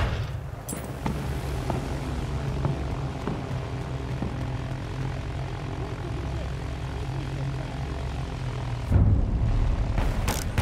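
A boat's engine hums steadily.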